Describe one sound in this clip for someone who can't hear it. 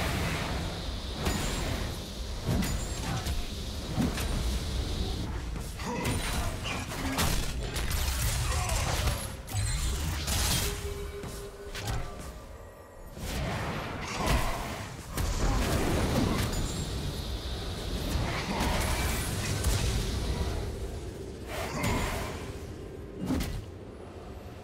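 Spell effects and weapon clashes of a game fight crackle and boom.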